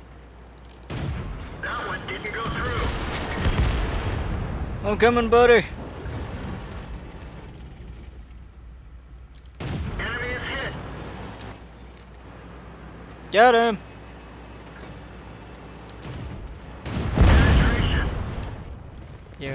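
Tank cannons fire with heavy booms.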